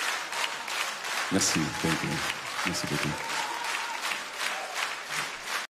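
A crowd applauds in a large hall.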